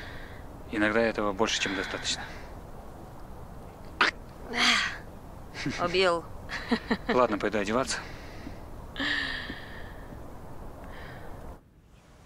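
A young woman talks softly.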